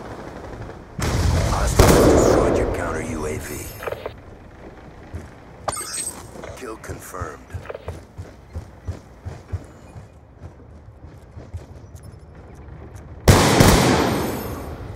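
A sniper rifle fires a loud shot that booms and echoes away.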